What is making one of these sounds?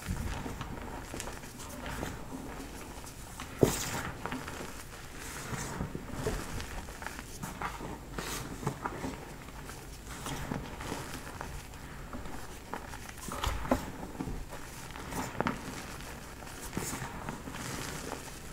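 Hands squeeze and crunch soft powder close up.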